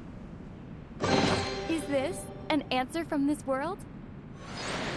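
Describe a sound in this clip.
A chest creaks open with a bright, rising chime.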